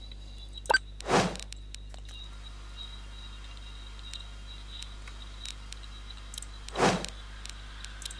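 Soft interface whooshes sound as menus change.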